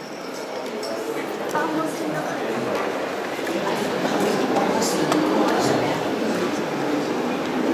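A small ensemble of flutes, violins and a cello plays softly.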